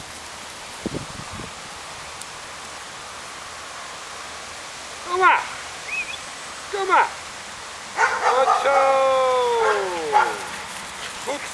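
A dog's paws patter across grass.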